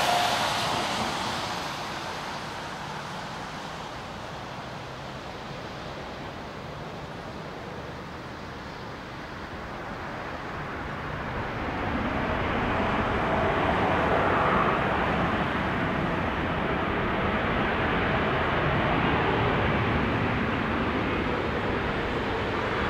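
A jet airliner's engines roar loudly, swelling as the plane speeds closer.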